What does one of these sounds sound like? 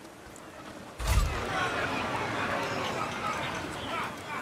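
A loud magical blast booms, followed by a shimmering, crackling rush.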